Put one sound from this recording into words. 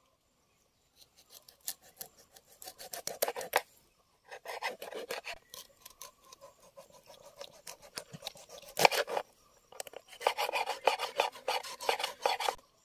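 A knife scrapes and taps against a fish on a wooden board.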